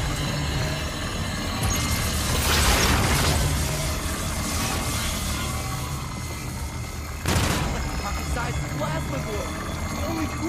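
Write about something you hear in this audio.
A ray gun zaps and hums loudly.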